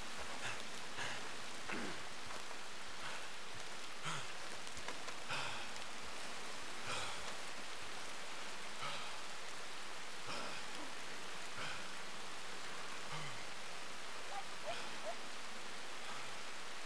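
Footsteps rustle slowly through tall grass.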